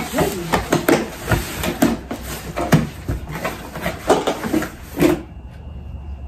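Cardboard boxes rustle and thump as they are handled.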